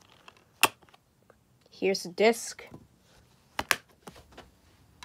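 A plastic disc case clicks and snaps open.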